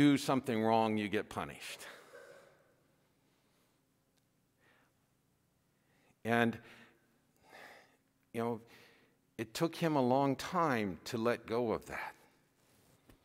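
A man sings a chant through a microphone in a reverberant hall, with pauses between phrases.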